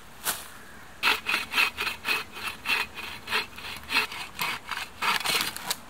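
A hand saw cuts back and forth through wood with a rhythmic rasp.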